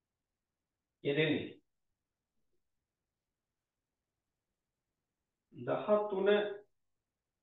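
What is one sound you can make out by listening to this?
A man speaks briefly and calmly, close to a microphone, with long pauses.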